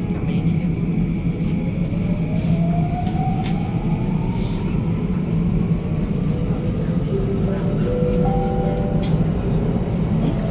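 A train's motor whines and rises in pitch as it speeds up.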